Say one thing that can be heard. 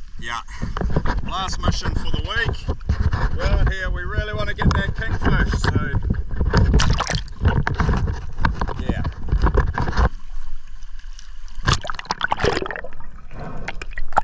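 Water splashes and sloshes around the microphone.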